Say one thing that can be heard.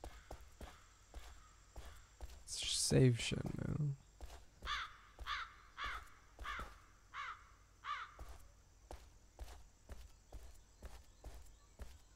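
Footsteps tap steadily on stone.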